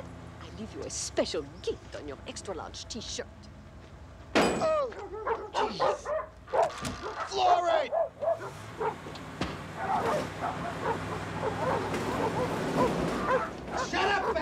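A van engine idles and pulls away.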